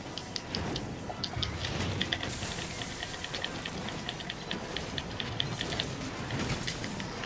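A sword slashes and clangs against a monster's hide again and again.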